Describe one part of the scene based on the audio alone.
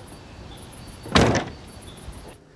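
A heavy door thuds shut.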